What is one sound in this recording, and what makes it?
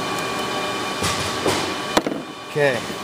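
A metal tool clatters onto a metal surface.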